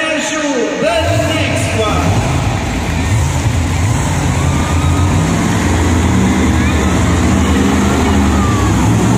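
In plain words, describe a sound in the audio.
Monster truck engines rumble and roar in a large echoing arena.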